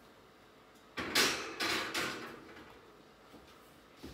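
An oven rack rattles as it slides.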